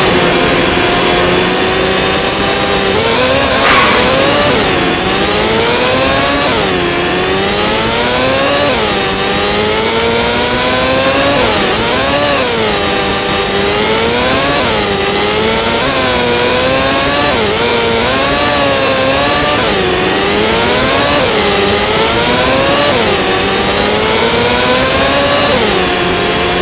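A racing car engine screams loudly, rising in pitch as it speeds up and dropping sharply with each gear change.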